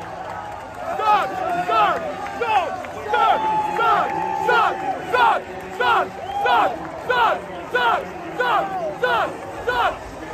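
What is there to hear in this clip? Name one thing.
A crowd chants in a steady rhythm.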